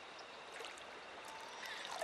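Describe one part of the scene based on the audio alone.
Water splashes softly as hands dip into a stream.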